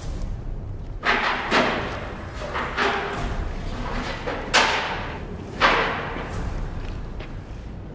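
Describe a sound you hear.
Rifle shots crack and echo through a large empty hall.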